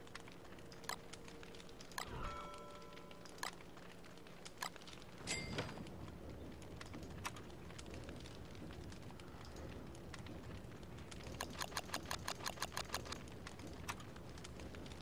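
Short clicks sound as game menus open.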